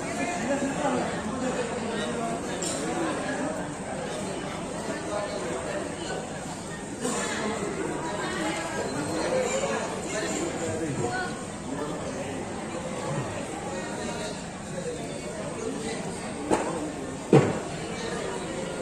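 A crowd of men and women chatter all around in a busy indoor hall.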